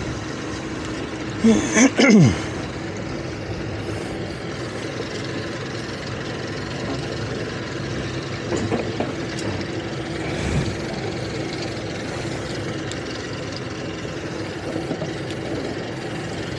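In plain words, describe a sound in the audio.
Wind blows across the water outdoors.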